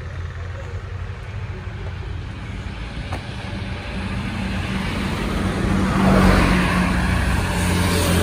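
A scooter engine idles close by.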